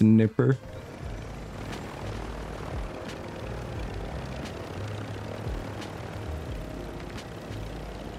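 A helicopter engine and rotors drone steadily.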